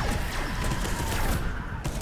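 A heavy energy weapon fires with a crackling burst.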